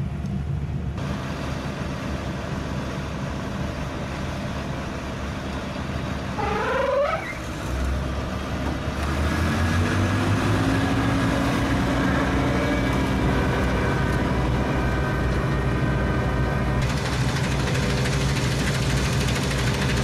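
A diesel combine harvester rumbles as it cuts wheat.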